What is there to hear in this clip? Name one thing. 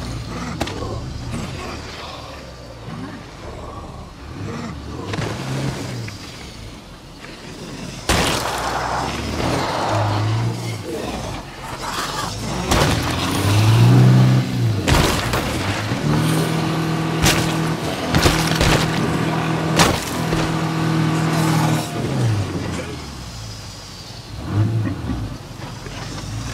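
A car engine hums and revs as the car drives over rough ground.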